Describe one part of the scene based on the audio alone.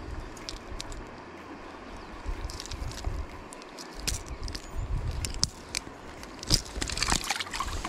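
Metal pliers click against a fish's lip.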